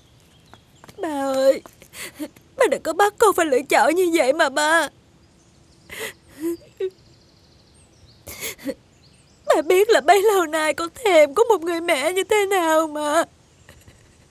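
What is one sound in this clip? A young woman sobs and speaks in a tearful, wailing voice close by.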